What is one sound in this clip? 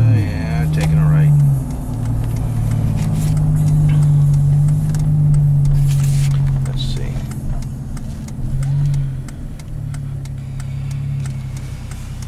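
A car engine hums steadily from inside the car, rising and falling slightly in pitch.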